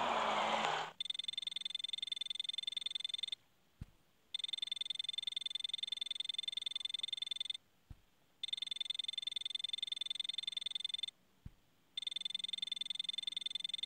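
A rapid electronic chatter of beeps plays as text types out, in bursts.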